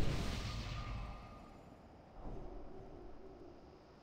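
Magic spells burst and whoosh.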